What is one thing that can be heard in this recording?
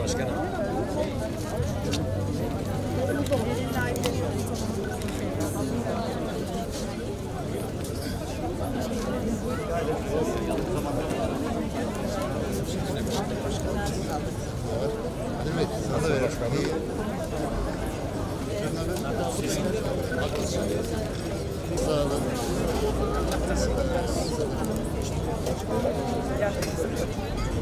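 A middle-aged man talks calmly up close.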